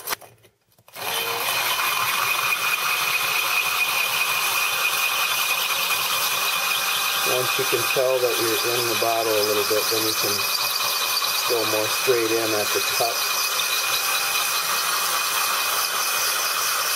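A power drill whines steadily as it grinds into glass.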